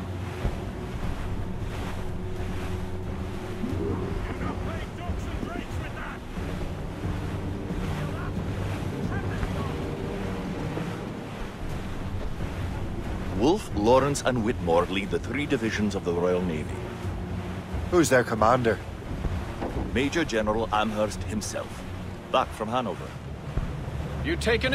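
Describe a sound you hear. Wind blows steadily over open water.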